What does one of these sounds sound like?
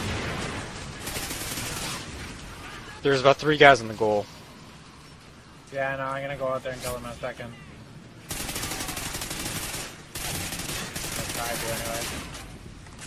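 Gunfire bursts rapidly in loud volleys.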